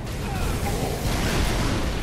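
Energy weapons fire in quick bursts.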